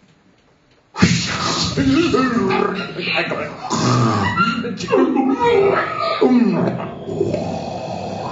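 Two men play harmonicas into microphones.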